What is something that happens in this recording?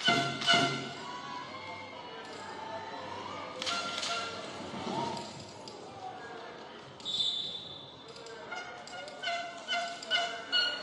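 A ball thuds against bicycle wheels.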